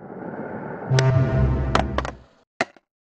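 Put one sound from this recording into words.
A skateboard grinds and scrapes along a metal rail.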